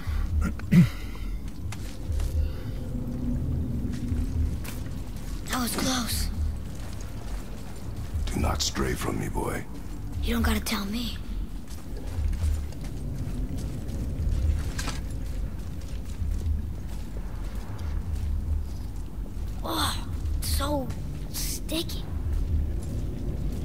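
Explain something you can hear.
Heavy footsteps tread slowly on rocky ground.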